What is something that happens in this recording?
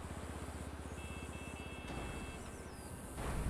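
Short soft electronic tones beep.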